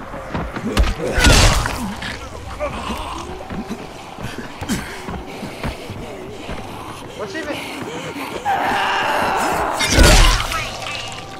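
A heavy blow strikes a body with a loud wet thud.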